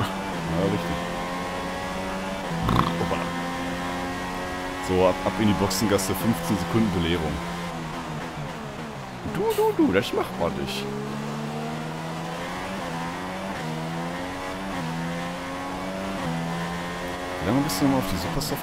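A racing car engine screams at high revs, its pitch rising and falling through gear changes.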